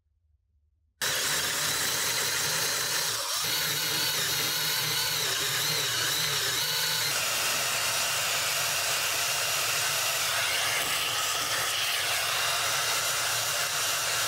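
A cordless drill whirs steadily as a large bit bores into wood.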